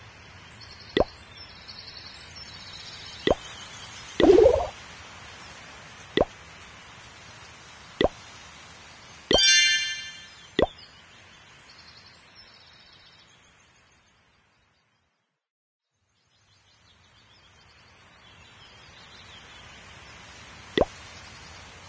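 Short taps click as game menus open and close.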